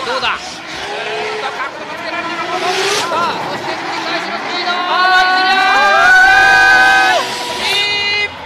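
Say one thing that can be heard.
A car engine revs hard and roars, rising and falling.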